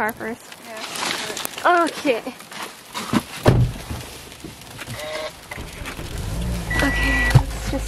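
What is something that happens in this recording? Windshield wipers scrape across an icy windshield.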